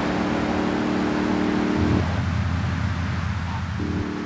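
A car engine hums as it drives by.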